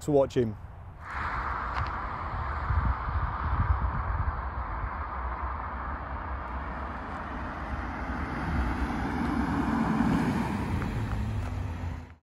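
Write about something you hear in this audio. A car engine roars as a car approaches and speeds past.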